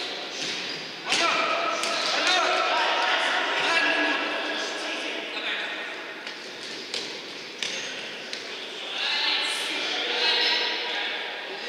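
Players shout to each other across an echoing hall.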